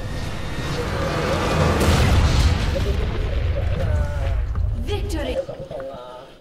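A large structure explodes with a deep, rolling rumble.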